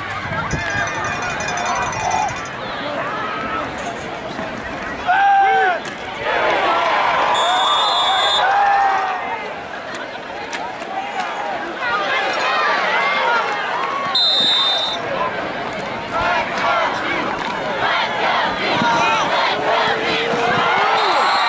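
A crowd cheers from the stands outdoors.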